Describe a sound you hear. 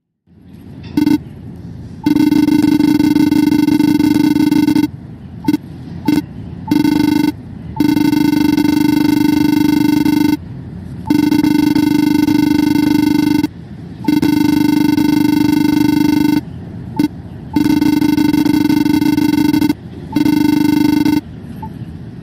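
Video game dialogue blips beep in a buzzy tone as text types out.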